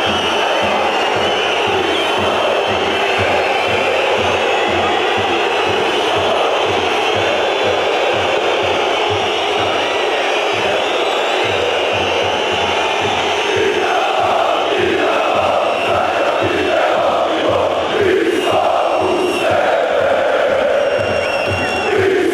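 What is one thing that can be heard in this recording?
A crowd of fans claps in a steady rhythm.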